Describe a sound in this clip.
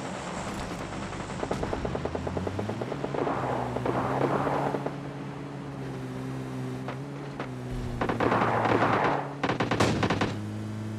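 A game jeep's engine drones as it drives.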